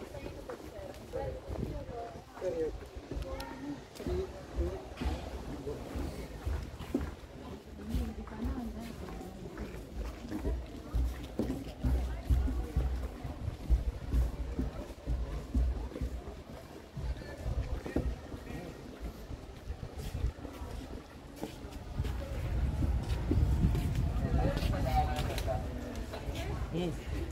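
Voices of a crowd of people chatter outdoors.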